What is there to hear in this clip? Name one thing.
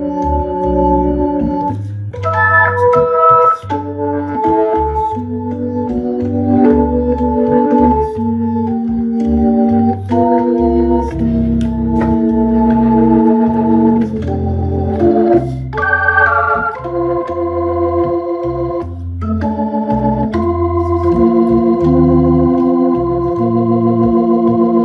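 An electric organ plays a lively tune with sustained chords and a deep bass line.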